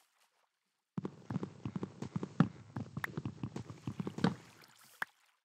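A block is broken with rapid scratching, crunching hits.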